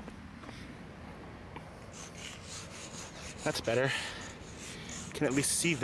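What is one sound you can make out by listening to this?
Chalk scrapes across rough pavement.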